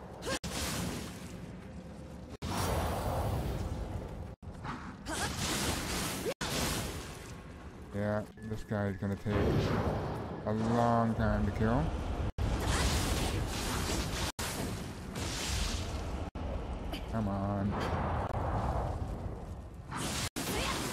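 Swords clash and slash with loud whooshing sounds.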